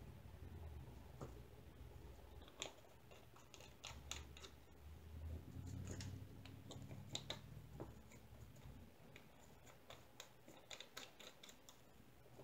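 Small plastic containers click and rattle as hands handle them.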